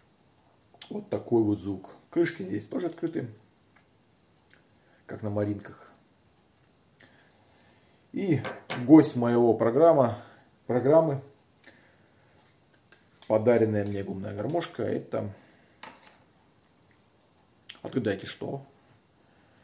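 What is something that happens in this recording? A man speaks calmly and close by, in short phrases with pauses.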